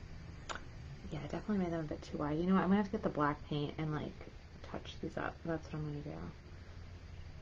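A woman speaks calmly, close to the microphone.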